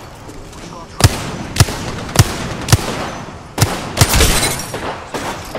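A rifle fires single shots.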